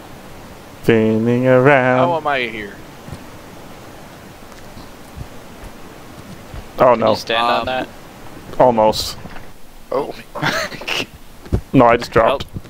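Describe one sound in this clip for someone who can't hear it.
A young man talks animatedly into a close microphone, in bursts.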